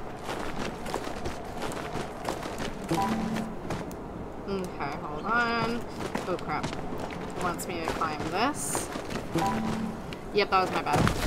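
Footsteps crunch softly on snow.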